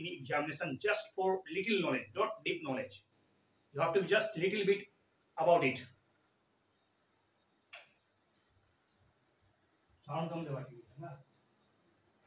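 A man speaks with animation close to the microphone.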